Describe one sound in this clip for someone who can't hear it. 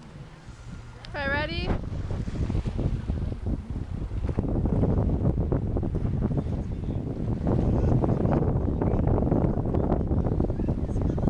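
Wind blows over the water outdoors.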